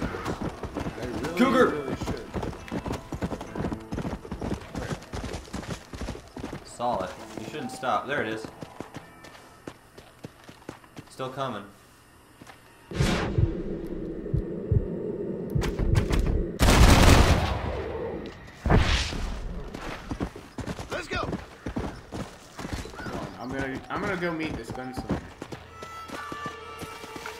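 A horse gallops, hooves thudding steadily on a dirt track.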